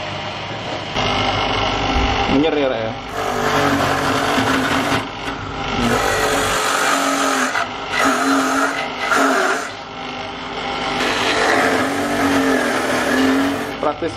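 A machine grinds loudly as coconut flesh is pressed against a spinning grater.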